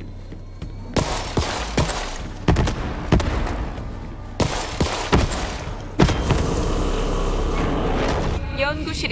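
A gun fires in loud, rapid bursts.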